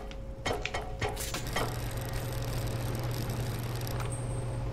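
A lift hums steadily as it moves.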